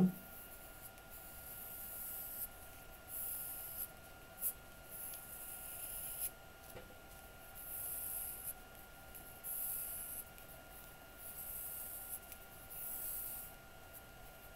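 A pencil scratches across paper in short strokes.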